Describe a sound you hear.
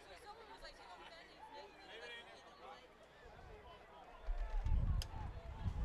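Football players collide with dull thuds on a grass field.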